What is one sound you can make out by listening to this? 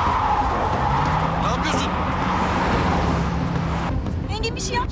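A car engine hums close by as a car drives past.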